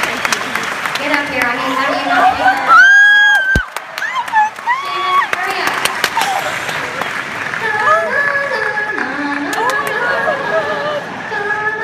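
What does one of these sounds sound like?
A small orchestra plays along with the woman singing.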